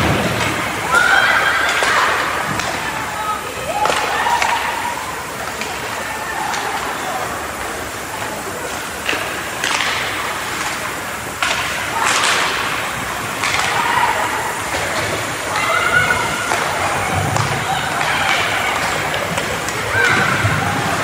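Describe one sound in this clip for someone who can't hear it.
Spectators call out and cheer from the stands.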